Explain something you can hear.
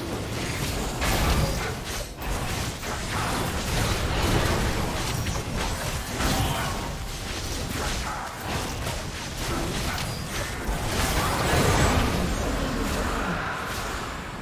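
Spell effects burst and crackle in a game battle.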